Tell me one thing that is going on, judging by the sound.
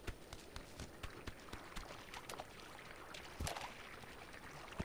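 A goose splashes in shallow water.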